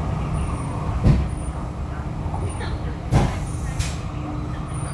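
A train's carriage rattles and knocks now and then.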